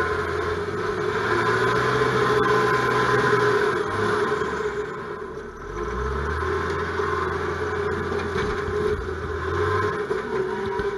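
A machine's engine revs up and down as it turns.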